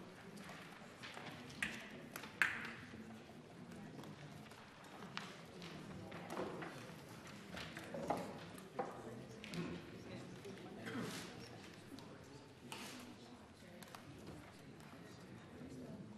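People murmur quietly in a large echoing chamber.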